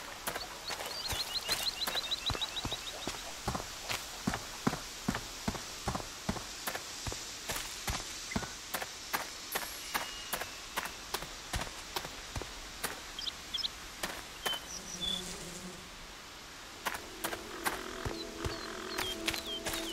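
Footsteps crunch steadily on a path.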